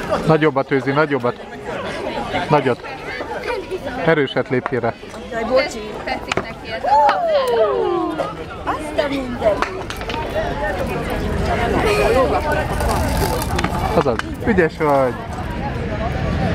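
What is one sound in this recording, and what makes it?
Young children talk and shout excitedly nearby.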